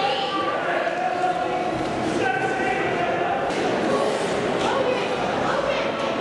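Young men call out and talk in a large echoing rink.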